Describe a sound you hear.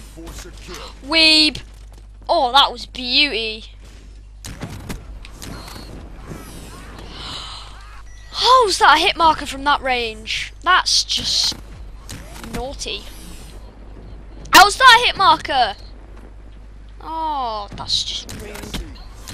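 A teenage boy talks loudly and excitedly into a headset microphone.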